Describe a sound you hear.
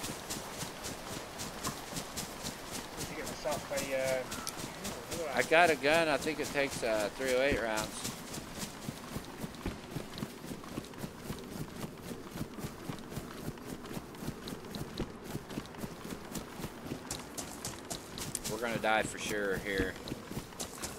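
Footsteps rustle steadily through dry grass.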